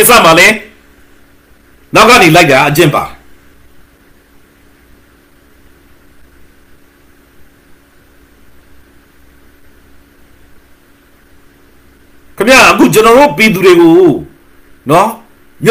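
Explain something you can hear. A middle-aged man speaks calmly and close up, heard through a computer microphone, with long pauses.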